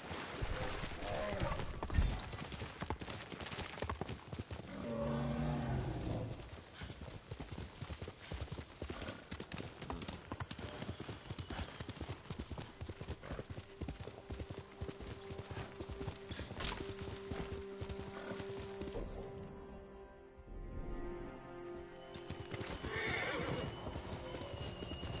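A horse gallops fast, its hooves drumming on grass and dirt.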